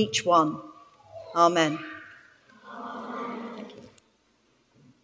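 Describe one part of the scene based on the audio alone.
A woman speaks into a microphone in a large echoing hall.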